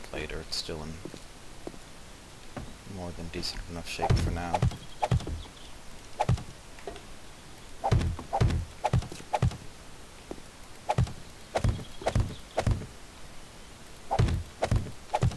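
Heavy blocks are set down with short, dull thuds, one after another.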